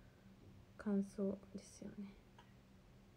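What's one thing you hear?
A young woman speaks softly and briefly, close to the microphone.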